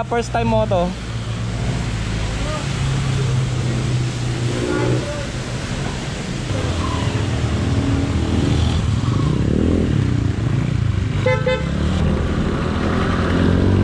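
A motorcycle engine idles and revs close by.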